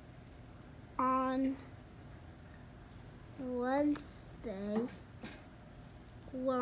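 A young child reads aloud slowly, close by.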